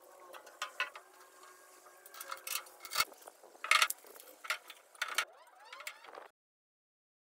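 Metal parts clank and click as a machine is adjusted by hand.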